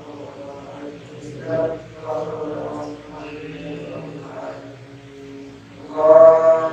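A young man chants melodically into a microphone in an echoing room.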